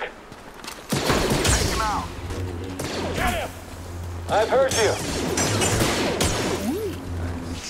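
Blaster shots zap in rapid bursts.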